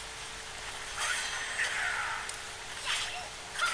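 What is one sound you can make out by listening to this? Blades swish and clash in quick metallic hits.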